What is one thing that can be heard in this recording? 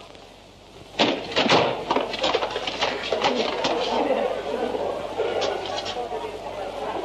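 A man talks excitedly, close by.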